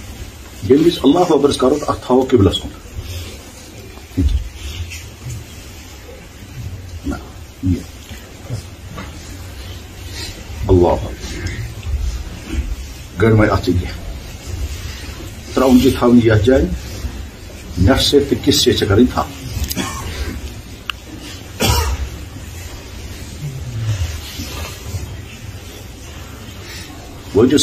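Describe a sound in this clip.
A middle-aged man speaks with animation into a microphone, in short bursts with pauses.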